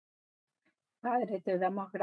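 A middle-aged woman speaks calmly close by.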